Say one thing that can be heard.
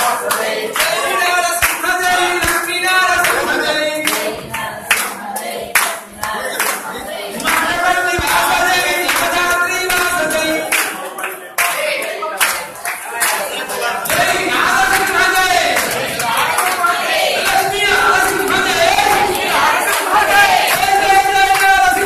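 A crowd of men sings and chants loudly close by in an echoing room.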